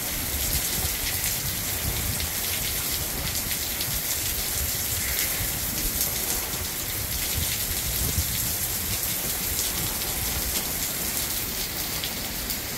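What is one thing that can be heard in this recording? Wind gusts rumble past.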